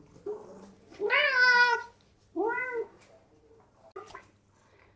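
A cat meows loudly, close by, a few times.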